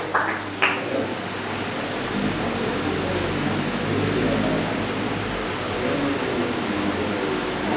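A man speaks calmly into a microphone nearby.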